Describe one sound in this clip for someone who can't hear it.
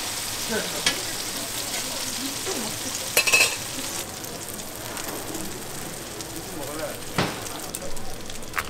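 Batter sizzles on a hot griddle.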